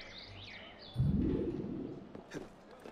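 A game character lands with a heavy thud.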